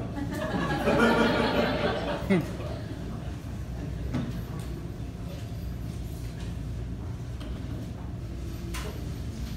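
An electric guitar is plucked softly.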